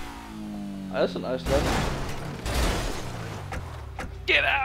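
A car crashes and tumbles with loud metal bangs and scrapes.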